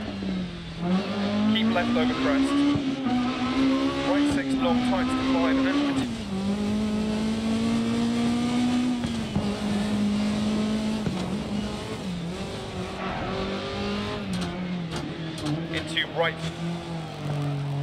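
A car engine roars and revs up and down at high speed.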